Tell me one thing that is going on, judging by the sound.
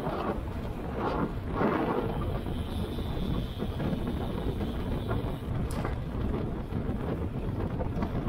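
Wind rushes loudly past while cycling outdoors.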